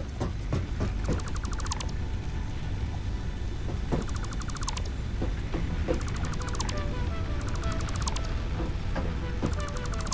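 A tool zaps in quick bursts of rapid clicking as structures are taken apart.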